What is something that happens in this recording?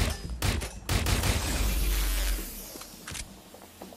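An explosion booms and hisses.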